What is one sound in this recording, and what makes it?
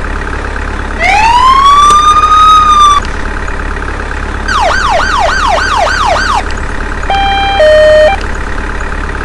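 An ambulance siren wails, yelps and warbles in short bursts.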